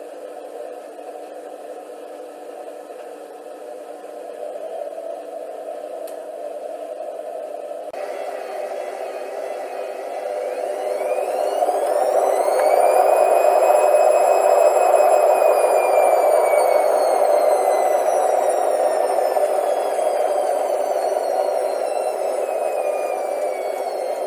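A washing machine drum turns with a steady hum.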